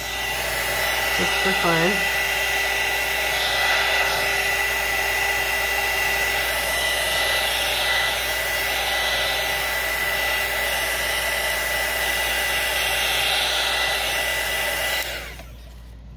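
A heat gun blows with a steady loud whir.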